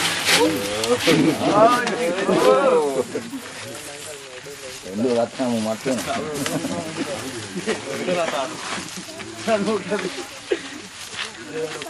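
A man talks loudly and with animation nearby.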